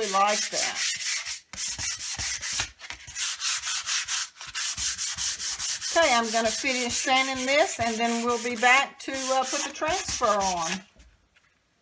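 Sandpaper rasps back and forth over a wooden board in quick, rhythmic strokes.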